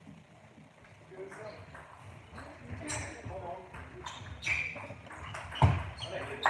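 A ping-pong ball clicks back and forth off paddles and a table in an echoing hall.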